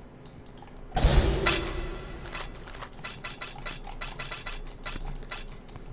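Game items clatter as they drop to the ground.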